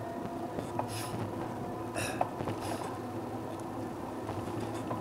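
Wheels roll steadily over rough pavement.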